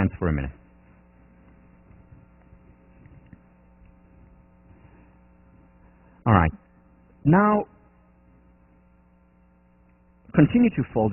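A man speaks calmly through a microphone in a large echoing hall, with long pauses.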